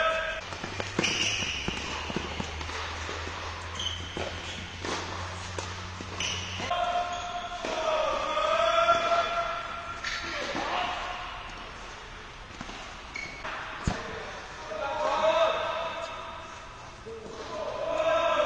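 A tennis ball is struck with a racket.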